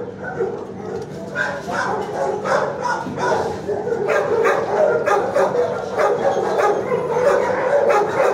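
A dog licks and slurps close by.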